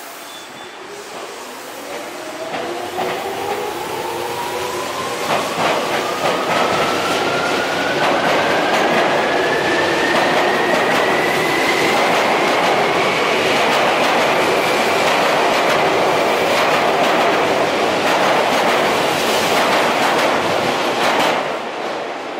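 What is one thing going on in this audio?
A train pulls away from a platform and rumbles past close by, gathering speed.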